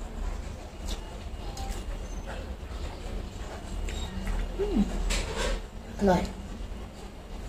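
A young woman chews and smacks her lips softly.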